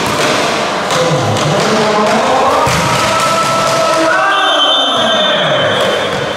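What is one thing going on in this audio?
Young men shout and cheer loudly across the court.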